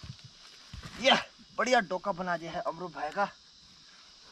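A man speaks loudly nearby, outdoors.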